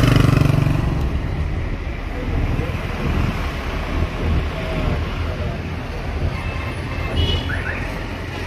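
A car's engine hums steadily as it drives along.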